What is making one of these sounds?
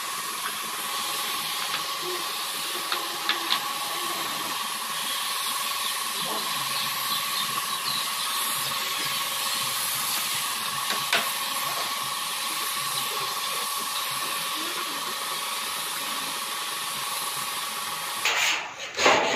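A spray gun hisses steadily.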